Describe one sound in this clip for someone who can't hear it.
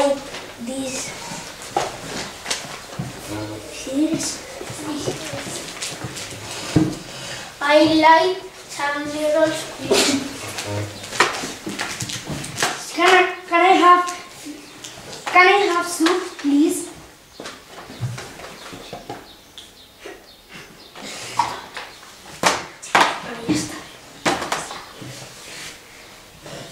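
A second young boy answers, close by.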